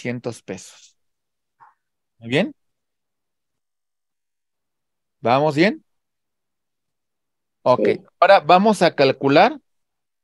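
A man speaks calmly in short phrases through a microphone on an online call.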